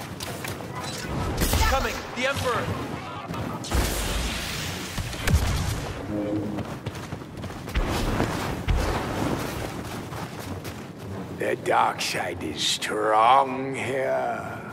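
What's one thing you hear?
Blaster shots zap in quick bursts.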